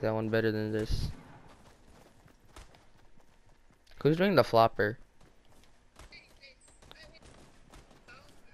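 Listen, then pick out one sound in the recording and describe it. Quick footsteps patter on hard ground and grass.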